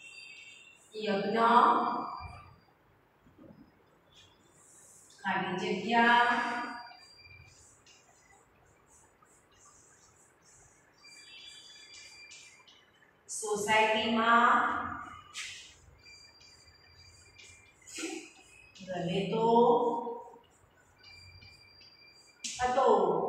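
A woman speaks calmly and clearly nearby, in short phrases with pauses.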